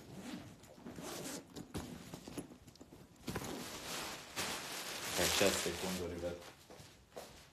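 A man speaks close to a phone microphone.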